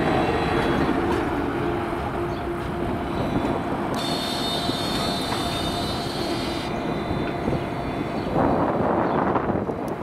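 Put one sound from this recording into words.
A tram hums and squeals as it rolls away around a curve.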